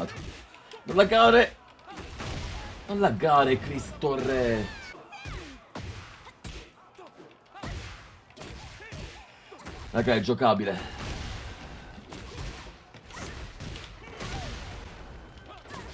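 Punches and kicks thud in quick bursts.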